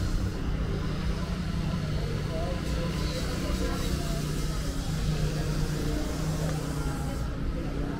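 A crowd of young people chatters nearby outdoors.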